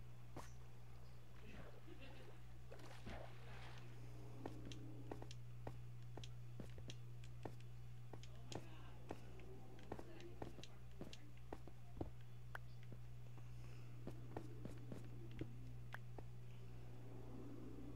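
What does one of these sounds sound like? Footsteps tap quickly on hard stone.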